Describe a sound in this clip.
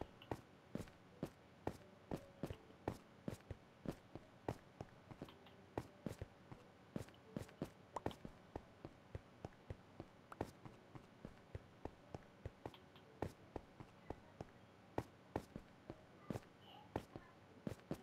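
Footsteps thud quickly on stone.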